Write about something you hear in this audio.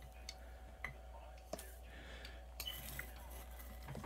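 A scoop taps against the rim of a glass jar.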